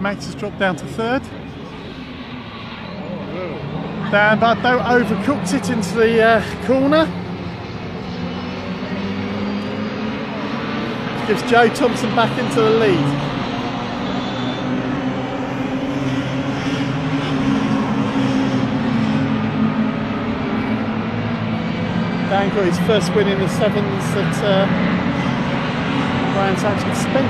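Racing car engines roar and rev as cars speed past.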